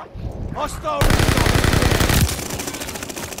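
Pistol shots ring out in a rapid burst.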